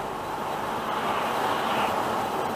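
A car passes close by in the other direction, its sound swelling.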